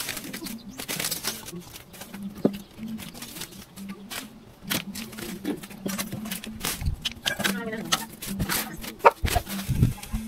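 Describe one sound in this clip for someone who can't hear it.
Leaves and dry debris rustle and scrape.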